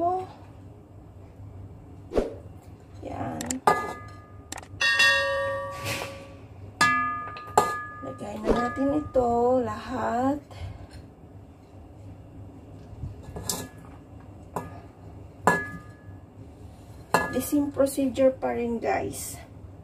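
Food drops softly into a metal pot.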